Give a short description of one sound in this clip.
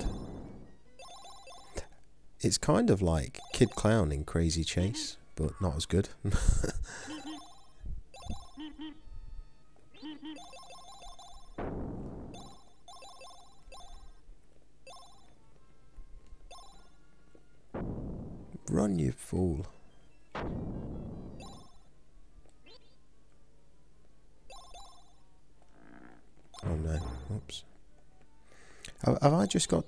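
Video game music plays with bright chiming notes.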